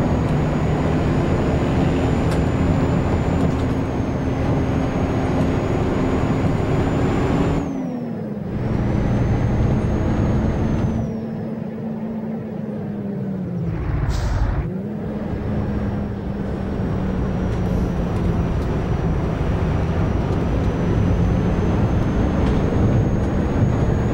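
A bus engine hums steadily, dropping in pitch and rising again as gears change.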